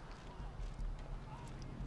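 Footsteps tap on a stone pavement.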